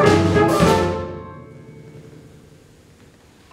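A jazz band plays a final chord that rings out in a large hall.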